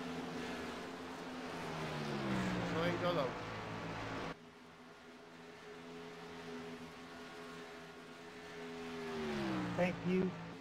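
Racing truck engines roar past at high speed, their pitch dropping as each one goes by.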